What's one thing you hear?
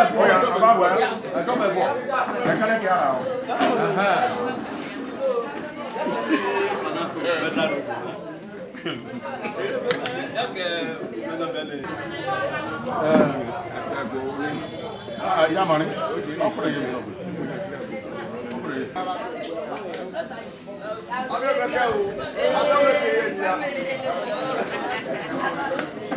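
Several men and women talk over each other.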